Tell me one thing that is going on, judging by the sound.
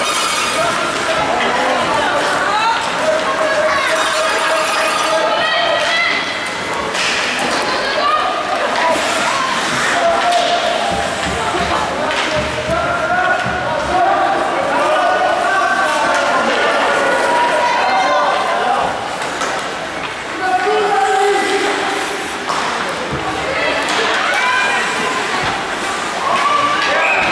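Children shout and call out in a large echoing ice rink.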